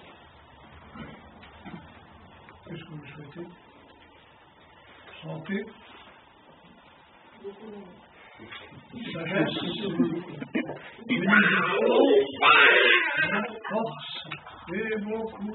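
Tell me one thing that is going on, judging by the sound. An elderly man speaks slowly and solemnly in a room with a slight echo.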